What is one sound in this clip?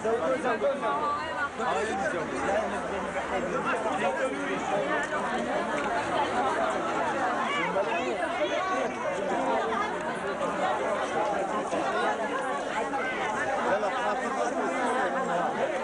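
A crowd of men and women chatter outdoors, many voices overlapping.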